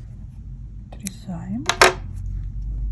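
Scissors snip through yarn.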